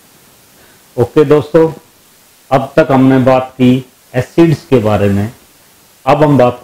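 A man speaks calmly and clearly into a clip-on microphone.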